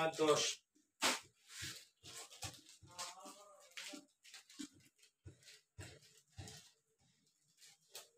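Small packets rustle and clatter as they are handled.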